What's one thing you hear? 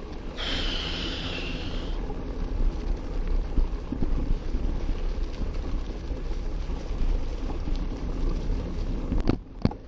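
Tyres roll and crunch over a sandy dirt trail.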